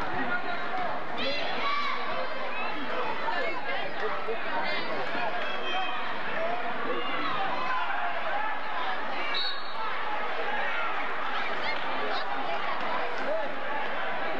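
A large crowd chatters and cheers in a big echoing gym.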